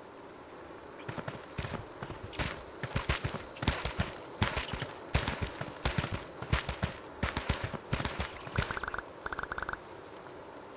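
Quick footsteps run over soft ground.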